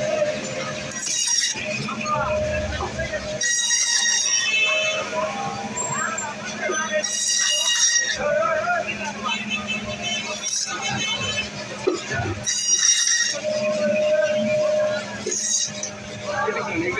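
A band saw blade rasps loudly through frozen fish in short bursts.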